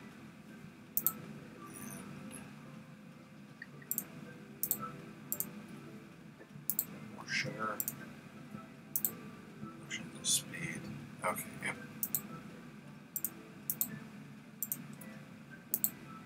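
Short, sharp clicks sound again and again as items are moved.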